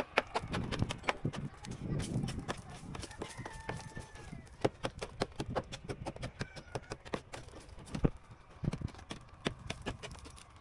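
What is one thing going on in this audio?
A hammer taps and chips at a plaster wall in quick, sharp knocks.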